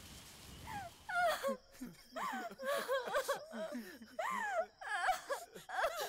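A young woman sobs and wails loudly.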